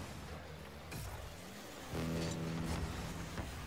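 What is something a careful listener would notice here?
A car thumps into a ball.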